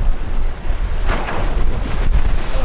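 Spray bursts up against the side of a boat.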